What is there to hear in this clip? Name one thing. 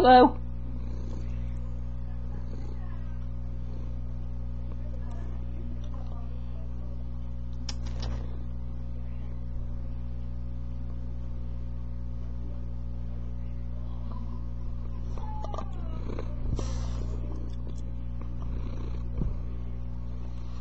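Cat fur brushes and rustles against the microphone.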